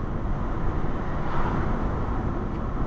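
A car passes by in the opposite direction with a brief whoosh.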